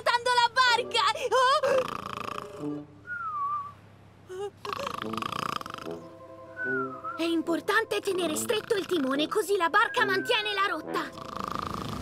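A young child's voice speaks excitedly in a high pitch.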